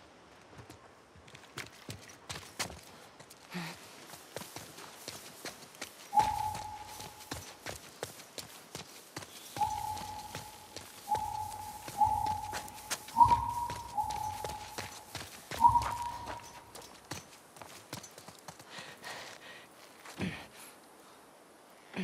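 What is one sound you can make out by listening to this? Footsteps swish and crunch through tall grass.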